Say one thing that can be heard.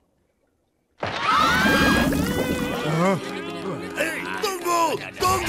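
A man complains in a gruff voice.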